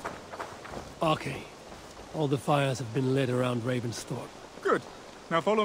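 A man speaks calmly and close.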